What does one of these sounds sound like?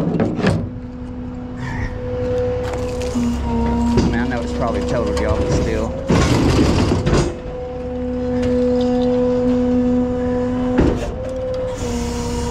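A hydraulic truck bed hums steadily as it tilts.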